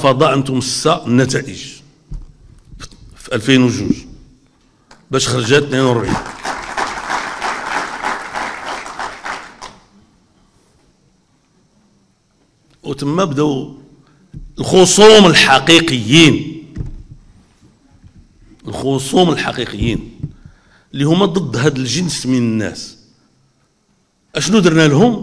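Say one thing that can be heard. An elderly man speaks forcefully into a microphone, in bursts with pauses, over a loudspeaker.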